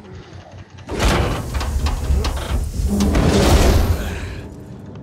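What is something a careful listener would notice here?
A heavy metal door grinds and slides open.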